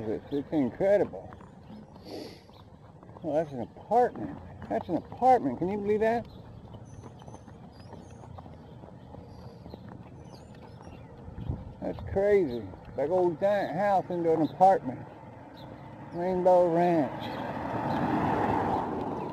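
Bicycle tyres roll quietly over pavement.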